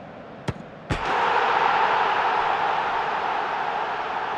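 A large crowd erupts into a loud roar of cheering.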